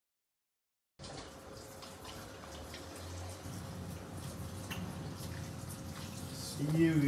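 Dishes clink and clatter in a metal sink.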